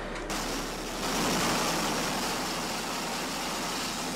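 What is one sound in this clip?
A stream of water hisses loudly as it sprays.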